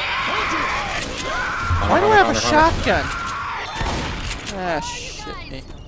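A shotgun fires in bursts.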